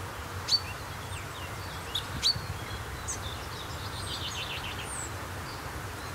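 Birds chirp and trill outdoors.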